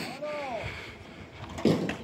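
A wheelbarrow rolls and rattles over rough dirt.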